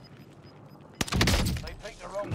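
A rifle fires a single loud shot that echoes away.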